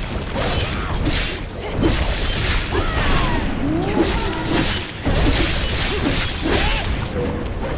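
Weapons clash and strike with heavy thuds.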